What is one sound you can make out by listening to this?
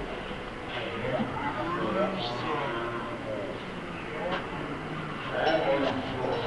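A woman calls out in a slowed, drawn-out voice.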